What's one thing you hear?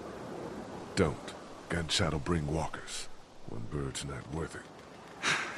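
A man speaks in a low, urgent voice close by.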